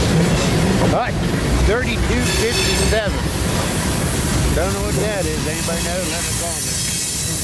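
Train wheels squeal and clatter on the rails.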